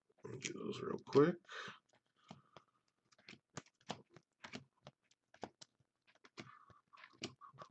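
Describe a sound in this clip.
Trading cards slide and flick softly against each other as a stack is sorted by hand.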